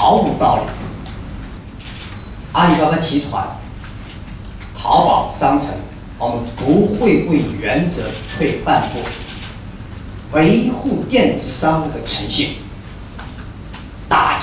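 A middle-aged man speaks emphatically through a microphone.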